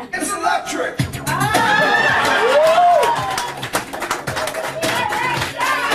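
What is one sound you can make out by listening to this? A middle-aged man and a woman sing together with animation.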